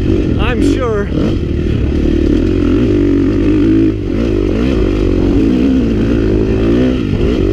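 Tyres crunch over a rough gravel track.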